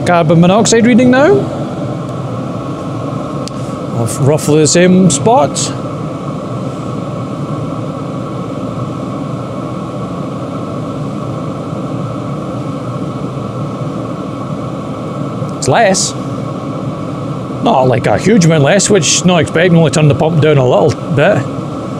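A heater hums steadily with a whirring fan.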